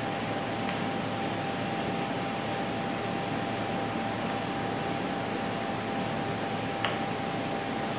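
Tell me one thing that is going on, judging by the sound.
A plastic bottle cap clicks and taps.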